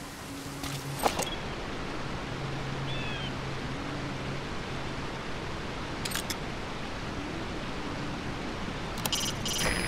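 Binoculars click sharply as they are raised and zoomed.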